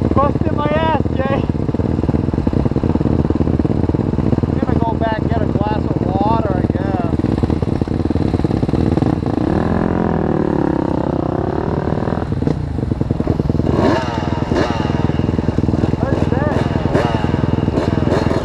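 A dirt bike engine revs up sharply, again and again.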